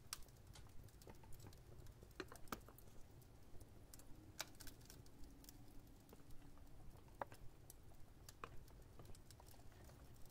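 A pen scratches and taps on paper with small clicks.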